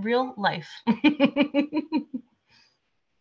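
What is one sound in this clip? A woman laughs heartily over an online call.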